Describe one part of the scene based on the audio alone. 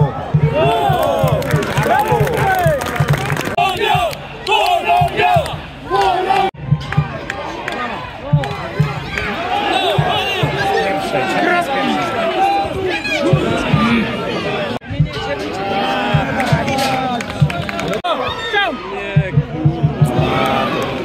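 A large crowd of fans sings and chants loudly outdoors.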